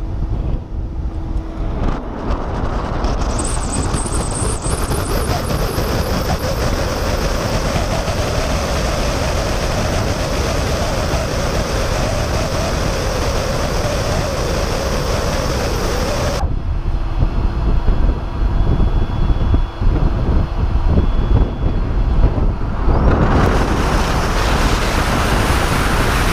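Wind roars past, loud and steady, as a car speeds along the road.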